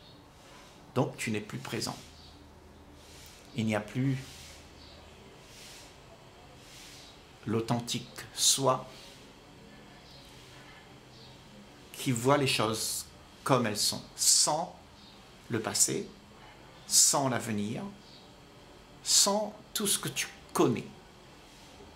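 An elderly man speaks calmly and slowly, in short phrases with pauses, close to a microphone.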